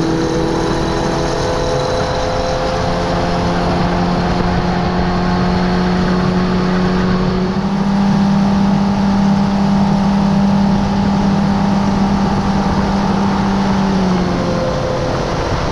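An outboard motor hums steadily, changing pitch as the boat speeds up.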